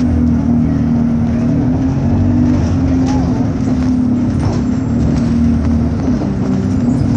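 Loose fittings rattle inside a moving bus.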